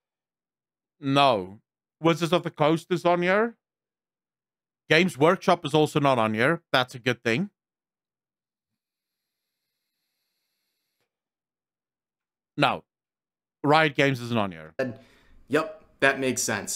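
A man speaks with animation into a close microphone, in bursts with pauses.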